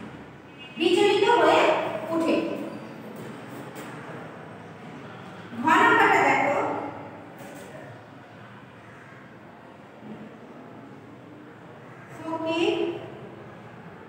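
A young woman speaks clearly into a nearby microphone in short bursts.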